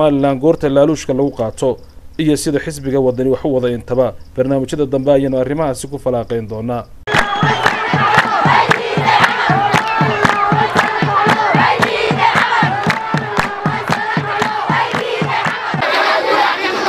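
A large crowd of women chants and cheers loudly outdoors.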